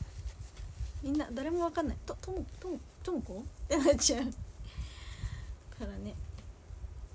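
A young woman speaks casually, close to a microphone.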